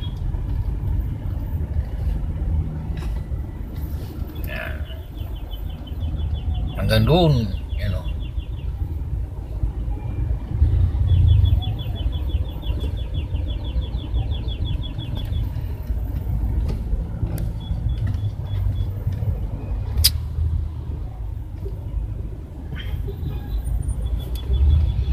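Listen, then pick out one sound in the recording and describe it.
Motorcycle engines putter close by.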